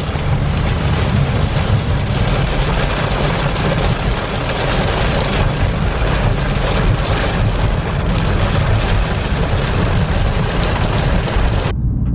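A car engine and tyres rumble on a wet road.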